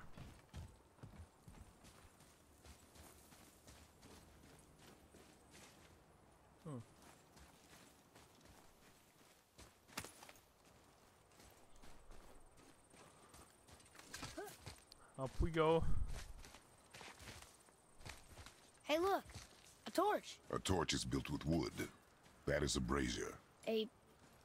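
Heavy footsteps crunch on gravel.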